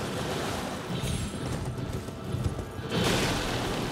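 Hooves thud on rock.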